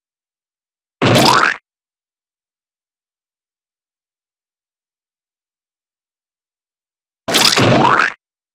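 A short squishing game sound plays as a bug is squashed.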